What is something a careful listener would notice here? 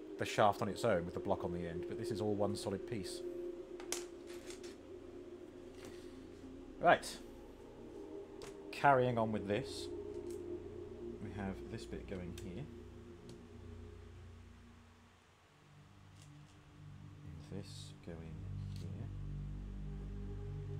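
Small plastic bricks clatter and click.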